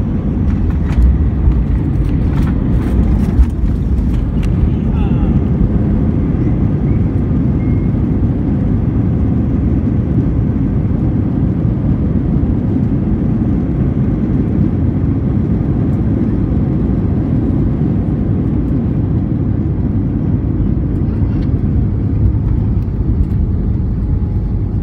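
Tyres rumble along the runway.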